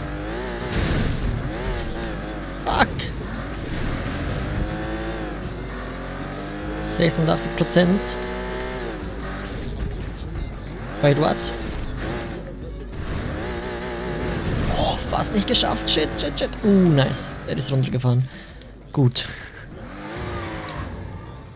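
A car engine roars and revs up and down as the car speeds along.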